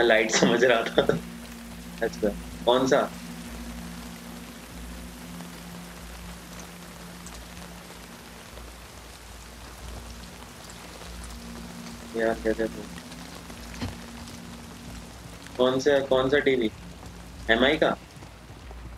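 A young man talks with animation close to a microphone, in short bursts.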